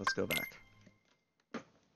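A game menu chimes as an option is selected.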